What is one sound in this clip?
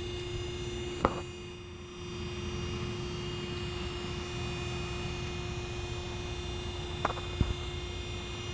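Metal clanks sharply on the door a few times.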